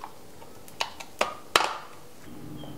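A pepper grinder crunches a few times.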